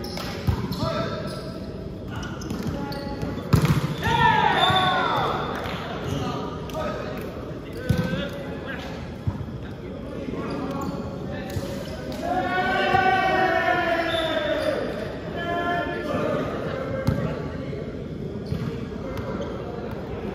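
Young men shout and call out in an echoing hall.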